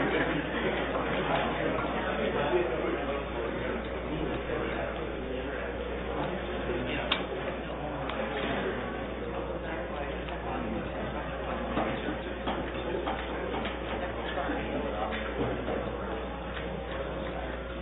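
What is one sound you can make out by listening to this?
Men murmur and talk quietly in a large echoing chamber.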